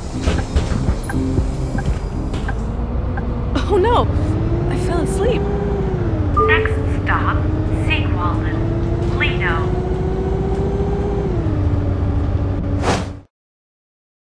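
A bus engine hums and rises in pitch as it pulls away.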